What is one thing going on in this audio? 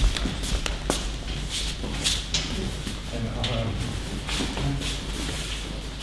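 Bare feet thump and slide on mats in a large echoing hall.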